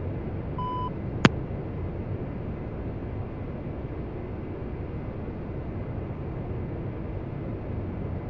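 A jet engine rumbles steadily.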